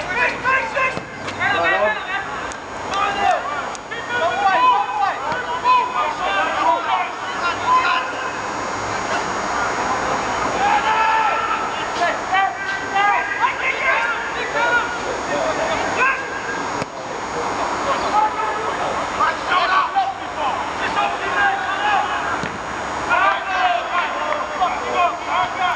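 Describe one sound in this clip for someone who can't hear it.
Young men shout and call to each other across an open pitch outdoors.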